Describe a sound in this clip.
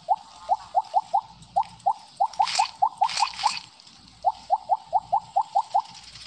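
Short rising blips pop in quick succession as glowing pellets are gobbled up.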